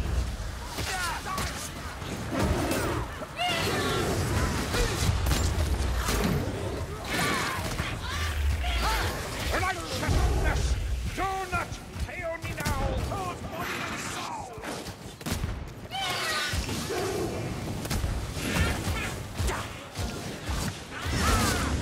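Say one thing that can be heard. Blades slash and strike flesh in quick, heavy blows.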